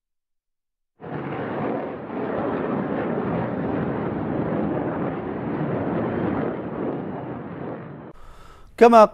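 A rocket barrage roars as rockets launch.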